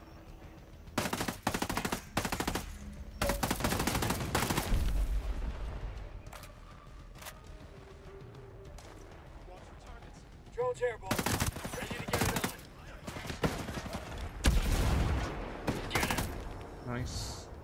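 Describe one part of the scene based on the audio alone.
Gunshots fire in rapid bursts, loud and close.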